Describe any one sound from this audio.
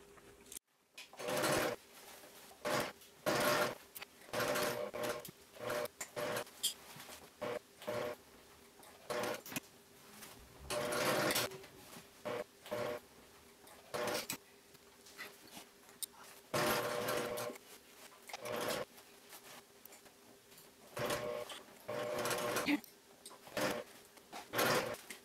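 A sewing machine stitches in short bursts.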